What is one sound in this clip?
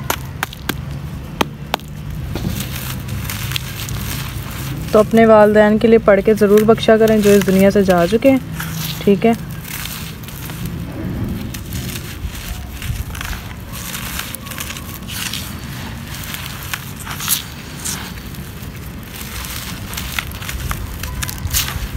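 Dry soil crumbles and crunches between fingers, close by.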